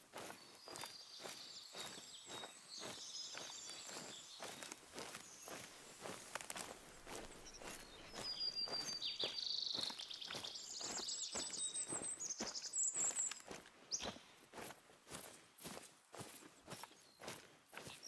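Footsteps rustle through low undergrowth at a steady walking pace.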